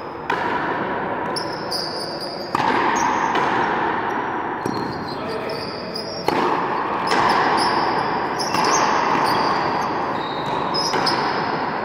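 A frontenis ball smacks against a wall, echoing through a large hall.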